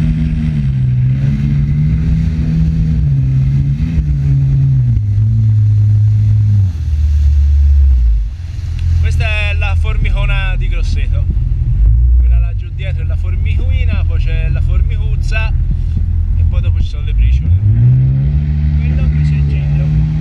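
A personal watercraft engine roars, then drops to a low idle and revs up again.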